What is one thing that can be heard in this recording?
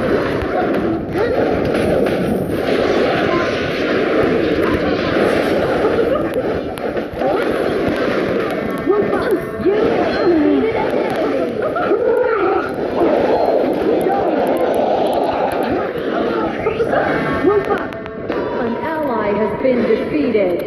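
Battle sound effects from a mobile game clash and crackle.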